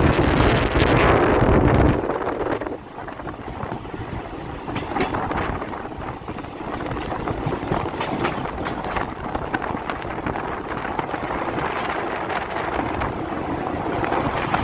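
Wheels clack rhythmically over rail joints.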